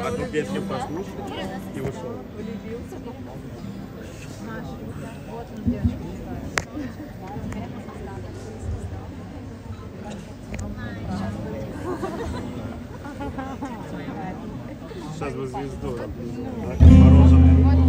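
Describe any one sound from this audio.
A guitar is plucked and tuned.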